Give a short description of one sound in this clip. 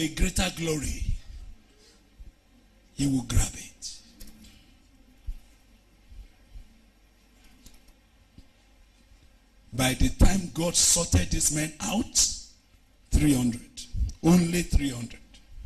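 A man preaches forcefully into a microphone, with long pauses, heard through a loudspeaker.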